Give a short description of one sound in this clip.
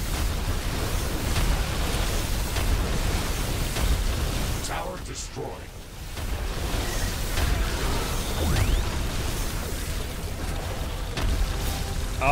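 Explosions and gunfire boom and crackle in a dense, steady battle din.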